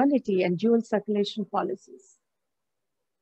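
A middle-aged woman speaks calmly over an online call, then falls silent.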